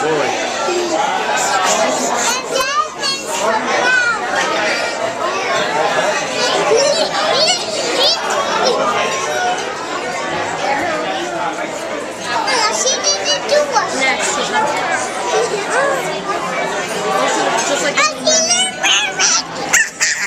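A young girl talks and laughs close by.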